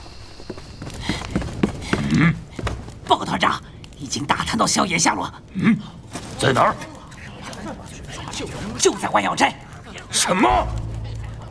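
A young man speaks urgently.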